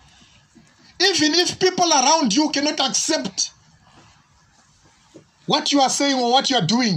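A man preaches loudly and passionately into a microphone, with pauses between phrases.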